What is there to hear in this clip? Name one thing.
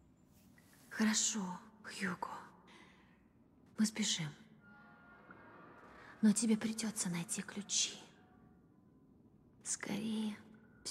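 A young girl speaks quietly and close.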